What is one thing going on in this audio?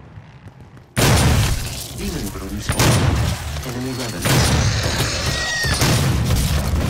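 Heavy guns fire in rapid, booming blasts.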